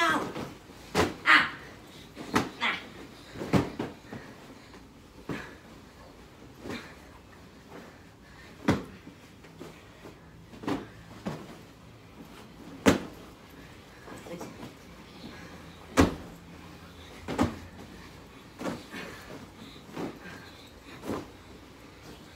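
Pillows thump softly against each other and against bodies.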